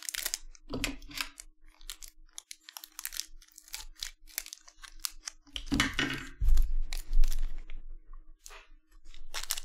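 A foil card pack crinkles as it is torn open.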